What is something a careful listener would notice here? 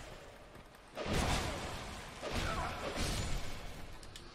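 Heavy blows and whooshing bursts sound in a fight.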